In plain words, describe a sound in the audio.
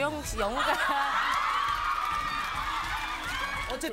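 A young woman laughs loudly.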